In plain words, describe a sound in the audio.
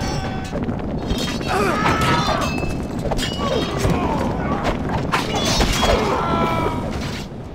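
Many soldiers shout and cry out in a noisy crowd.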